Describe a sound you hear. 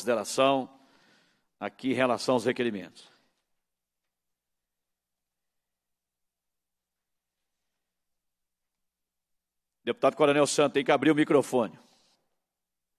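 A man speaks into a microphone in short phrases, with pauses.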